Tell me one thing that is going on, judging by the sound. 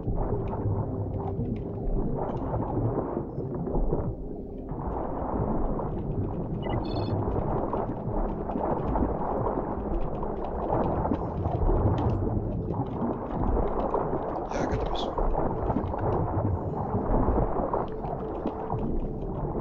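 Water rumbles and bubbles steadily underwater.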